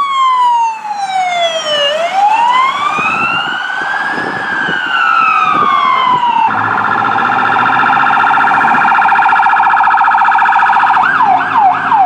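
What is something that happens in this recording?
Emergency sirens wail loudly, rising and falling slowly.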